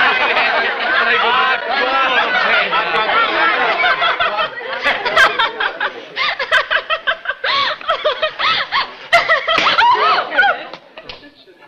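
A crowd of men and women cheer and laugh loudly.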